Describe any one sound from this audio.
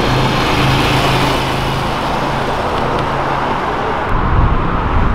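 A motorcycle engine rumbles as it rides past.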